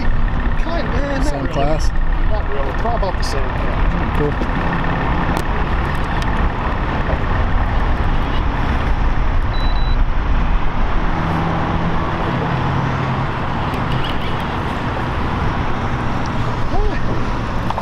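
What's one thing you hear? A fishing reel clicks as a man winds it.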